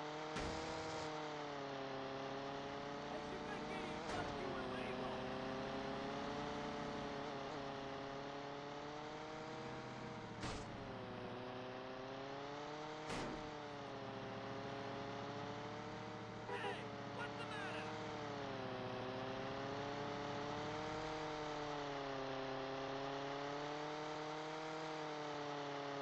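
A small propeller plane engine drones steadily, rising and falling slightly in pitch.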